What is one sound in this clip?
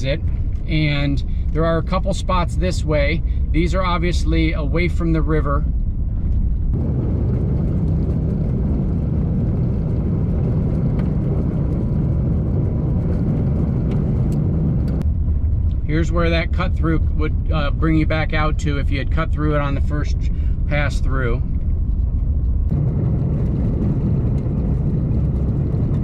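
Tyres crunch and rumble over a gravel road.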